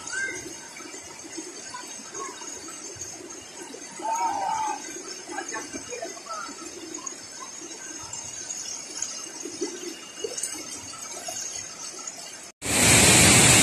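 River rapids rush and churn steadily.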